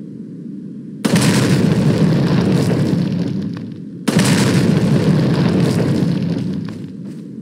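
A handgun fires two shots that echo.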